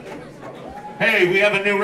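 A man speaks loudly through a loudspeaker.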